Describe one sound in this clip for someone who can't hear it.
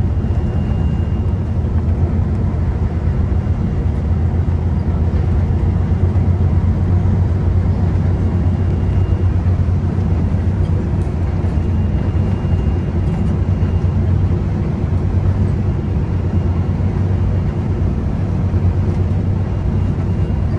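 Tyres hum on a paved road.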